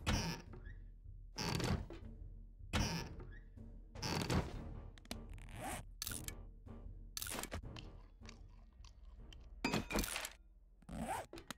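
Soft clicks tick repeatedly.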